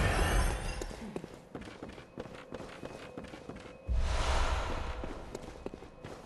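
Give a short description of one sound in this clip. Footsteps run quickly across hard floors and stone steps.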